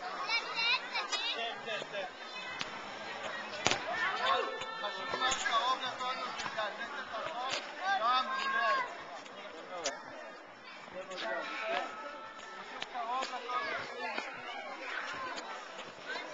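Young children chatter and call out nearby.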